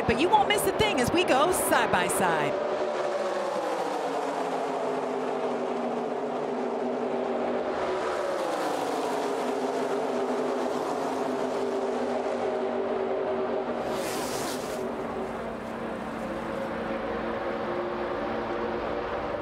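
Racing truck engines roar at high speed in a dense pack.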